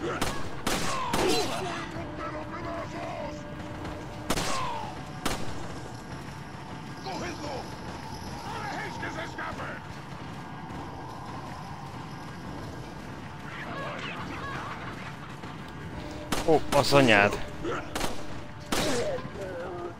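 A handgun fires several sharp shots.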